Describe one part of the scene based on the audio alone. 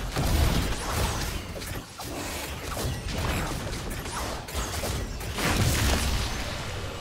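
Magic spells blast and crackle in a busy fight.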